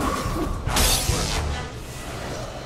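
A magic spell bursts with a loud crackling whoosh.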